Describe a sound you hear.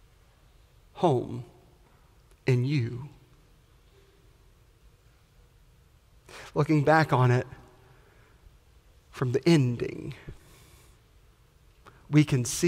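A man speaks through a microphone in short, lively bursts with pauses between them.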